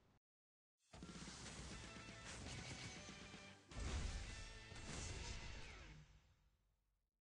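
A short triumphant game fanfare plays.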